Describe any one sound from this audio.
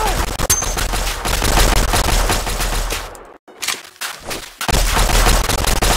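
A gun fires rapid shots.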